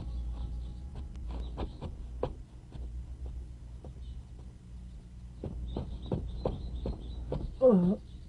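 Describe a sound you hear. Footsteps walk slowly on grass and stone.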